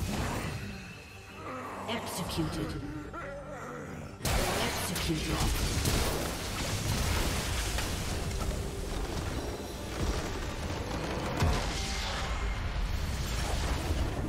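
Magic blasts and impacts crackle during a game battle.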